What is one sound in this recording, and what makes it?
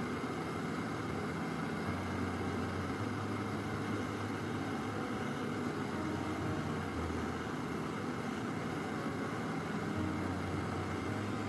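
A gas torch flame hisses and roars steadily.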